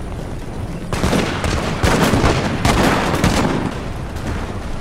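A volley of muskets crackles.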